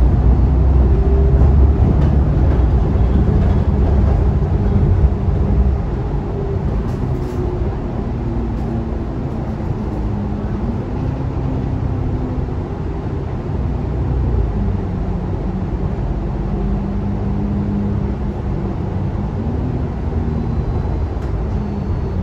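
A bus engine hums and drones steadily, rising and falling in pitch.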